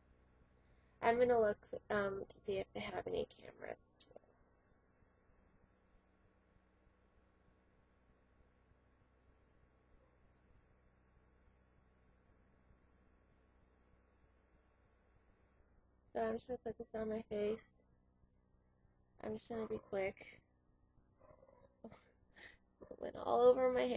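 A young woman speaks in short bursts close to the microphone.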